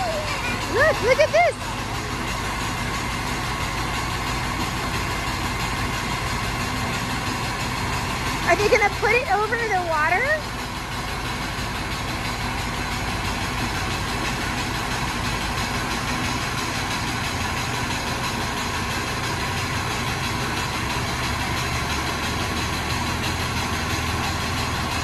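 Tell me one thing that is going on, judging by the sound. A truck engine runs with a loud, steady roar of suction.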